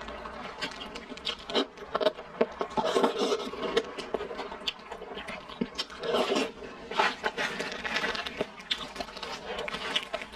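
Crispy food skin crackles and crunches close by.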